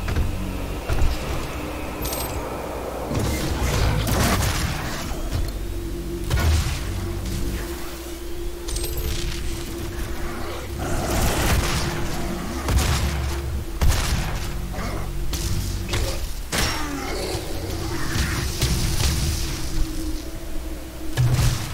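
Guns fire in loud, sharp bursts.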